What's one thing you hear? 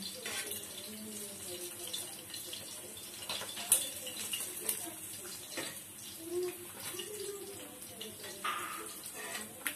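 A metal spatula scrapes and clinks against a frying pan.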